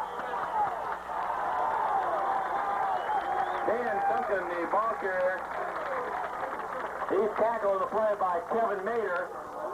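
Young men shout and cheer nearby, outdoors.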